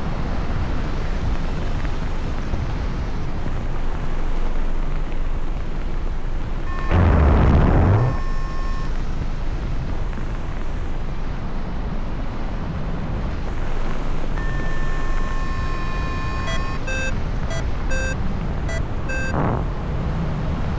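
Wind rushes loudly past the microphone in flight.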